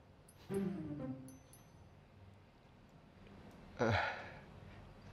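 A young man speaks quietly and briefly, close by.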